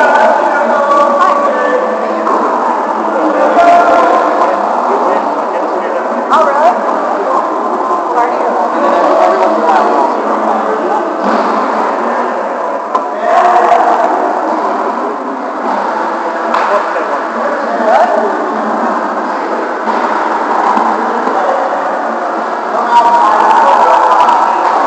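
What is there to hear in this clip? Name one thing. Many young men talk and call out in a large echoing gym.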